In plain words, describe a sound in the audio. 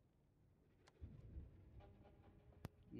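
A man speaks quietly into a close microphone.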